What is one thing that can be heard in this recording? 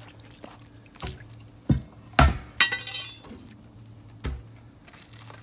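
Heavy metal parts knock and clank.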